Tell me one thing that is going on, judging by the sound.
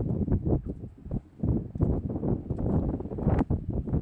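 Sandals scuff on pavement with each step.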